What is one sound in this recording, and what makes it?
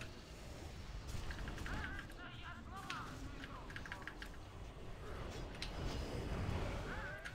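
Magic spells whoosh and chime amid clashing combat sounds.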